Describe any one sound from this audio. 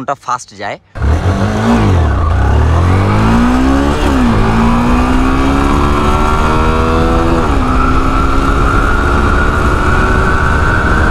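A motorcycle engine roars as it accelerates, its pitch climbing and dropping with each gear change.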